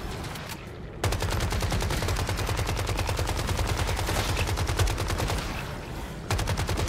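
Rapid gunfire rattles steadily.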